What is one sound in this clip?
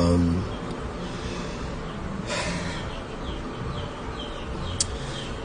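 A man sobs and moans close by.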